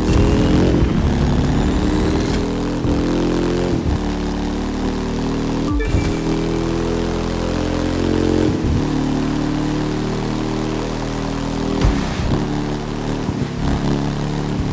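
A motorcycle engine roars steadily at high speed, its pitch shifting with gear changes.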